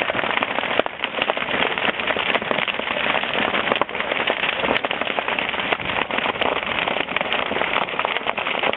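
Fireworks fizz and hiss.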